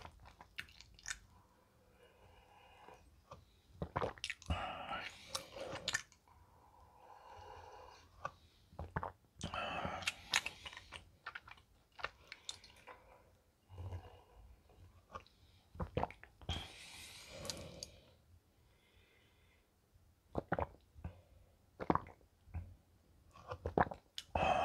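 A young man gulps milk loudly, close to a microphone.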